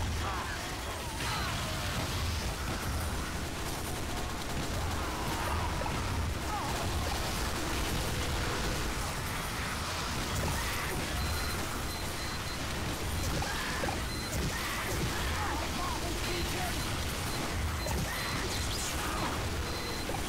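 Explosions boom repeatedly.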